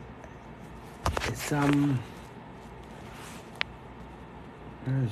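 An adult man talks close to the microphone.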